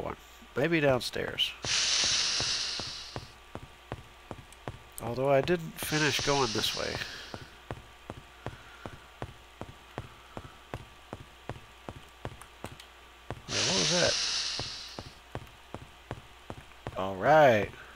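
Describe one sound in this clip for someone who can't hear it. Footsteps thud steadily on a stone floor.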